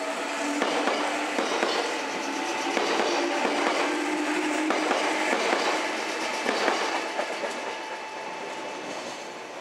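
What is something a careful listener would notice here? A train rolls past close by, its wheels clattering and squealing on the rails.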